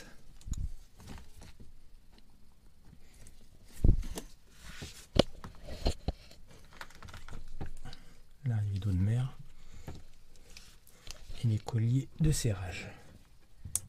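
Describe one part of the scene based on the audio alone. Plastic parts knock and click.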